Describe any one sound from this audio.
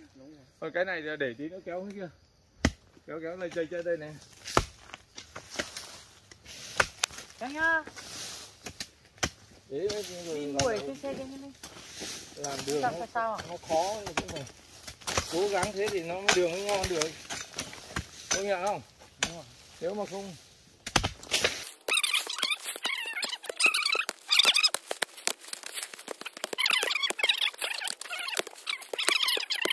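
Hoes chop into dirt with dull thuds.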